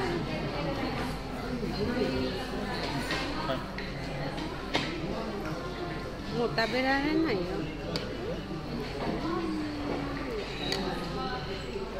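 A young girl talks close by.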